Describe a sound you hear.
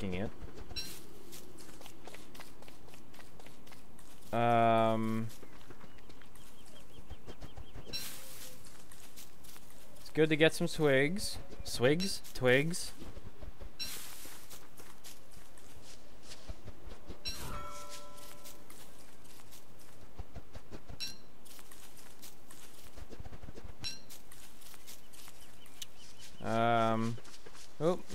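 Light footsteps patter steadily on grass.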